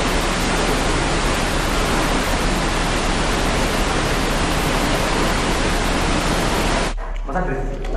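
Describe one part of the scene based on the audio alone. Water rushes and roars loudly.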